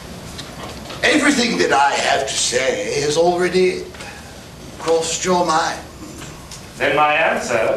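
A man speaks loudly and with feeling in a large hall, heard from far back in an audience.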